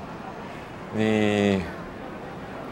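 A young man says a few words nearby.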